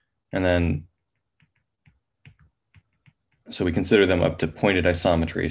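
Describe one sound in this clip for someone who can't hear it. A man speaks calmly into a close microphone, as in an online lecture.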